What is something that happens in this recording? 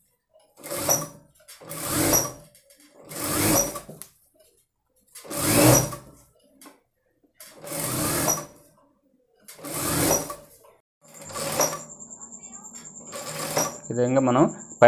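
A sewing machine stitches in short, repeated bursts.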